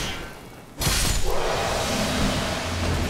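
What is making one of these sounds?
A magical burst shatters with a crackling rush.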